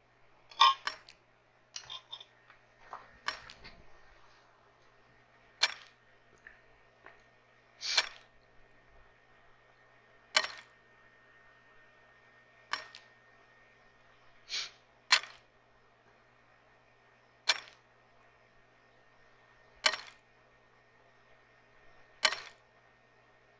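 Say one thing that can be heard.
A pickaxe strikes rock in sharp, regular blows.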